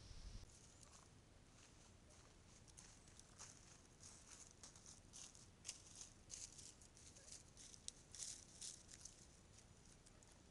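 Turkeys scratch and rustle through dry leaves.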